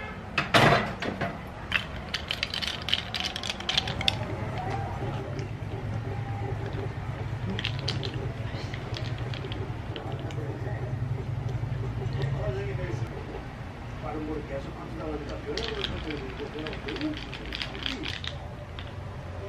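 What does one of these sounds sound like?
Ice cubes clink as a straw stirs a drink in a glass mug.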